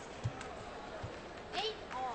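A ping-pong ball bounces on the floor.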